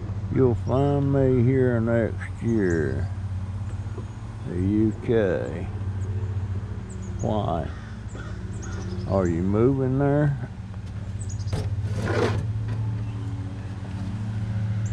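A mobility scooter's electric motor hums steadily.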